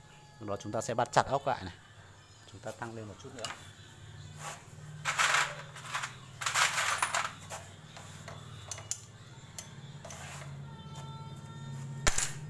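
A metal bike chain rattles as a hand moves it.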